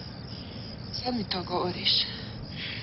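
A young woman speaks softly and closely.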